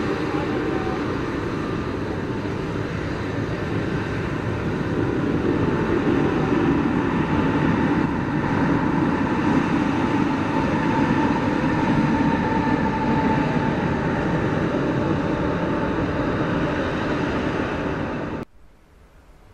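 A sweeper truck's brushes whir against the ground.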